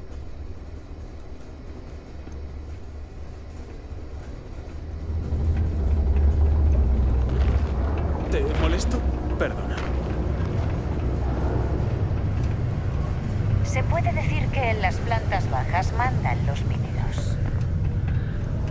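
A low, steady rumble of machinery fills an enclosed space.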